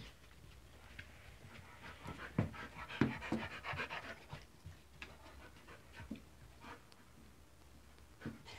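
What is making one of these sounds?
A dog's claws patter on carpet.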